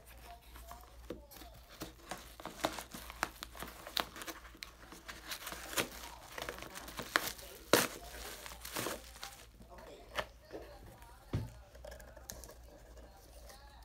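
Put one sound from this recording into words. Cardboard scrapes and rustles as a box is handled.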